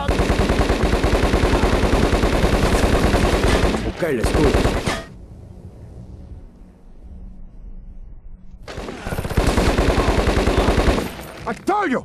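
A submachine gun fires rapid automatic bursts.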